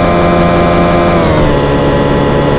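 A car engine drops in pitch as a gear shifts up.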